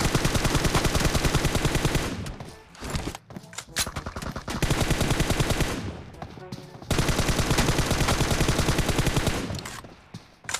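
Rapid automatic gunfire rattles in close bursts.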